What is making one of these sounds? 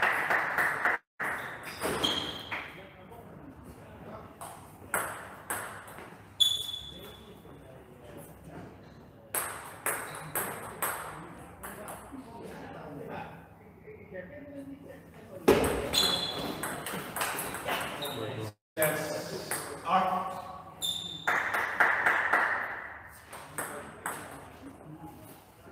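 A table tennis ball clicks quickly back and forth between paddles and the table, echoing in a large hall.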